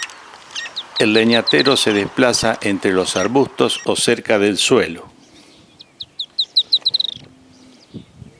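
A small bird sings loud, rapid, warbling trills close by.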